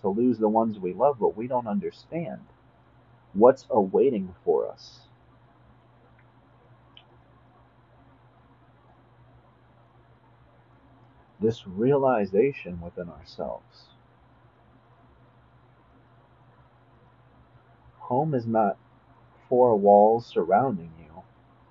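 A young man speaks calmly and close up, with pauses.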